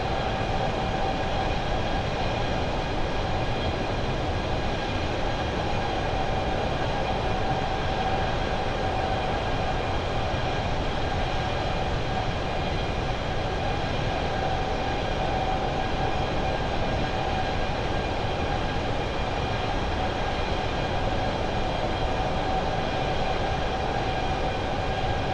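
Jet engines roar steadily with a constant high whine.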